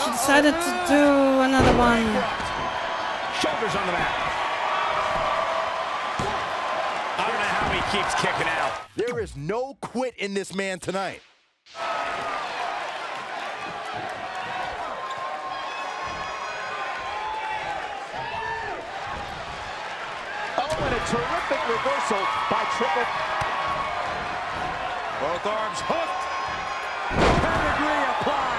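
Bodies slam heavily onto a wrestling mat.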